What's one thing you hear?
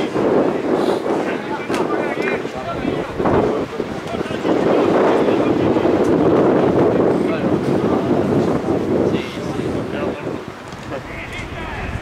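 Football players call out to each other across a field.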